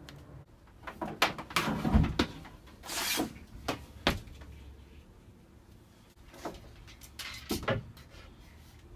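Heavy thuds and bumps sound as a man climbs about.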